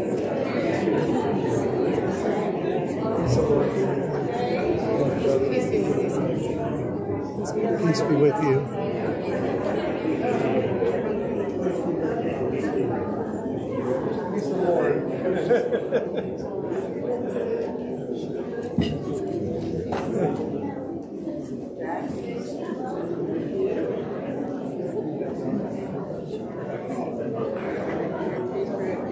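A congregation sings a hymn together in an echoing room.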